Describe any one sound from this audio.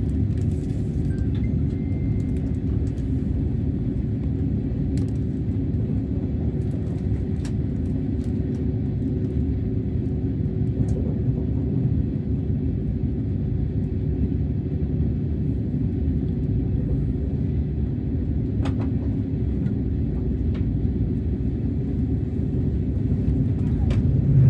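A train rumbles steadily on the tracks, heard from inside the carriage.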